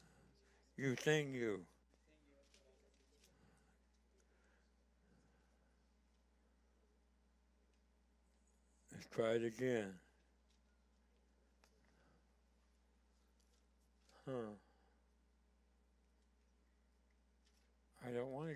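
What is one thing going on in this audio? An elderly man speaks slowly and calmly through a microphone, pausing long between phrases.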